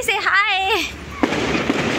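A young woman laughs brightly close by.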